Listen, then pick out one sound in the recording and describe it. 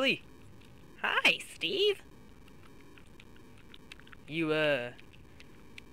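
A second man answers in a high, squeaky voice.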